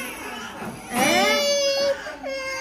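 A toddler cries loudly.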